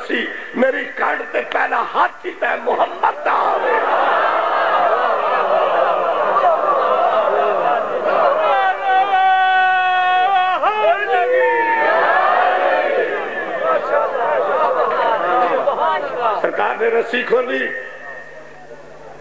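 A man preaches passionately into a microphone, heard through loudspeakers with echo.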